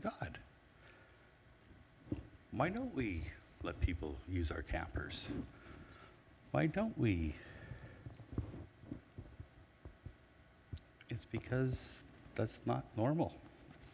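A middle-aged man speaks calmly through a microphone in a large echoing room, pausing between phrases.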